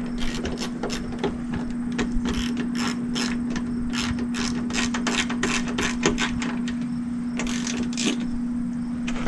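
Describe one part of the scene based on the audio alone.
A socket ratchet clicks rapidly as a bolt is turned.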